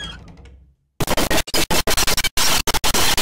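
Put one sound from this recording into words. Dishes rattle in a cupboard.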